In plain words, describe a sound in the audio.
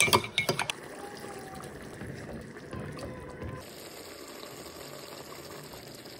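Liquid pours into a pot of stew.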